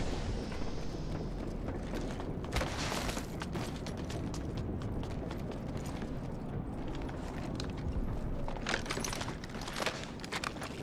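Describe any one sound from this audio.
Footsteps clatter quickly on a metal floor.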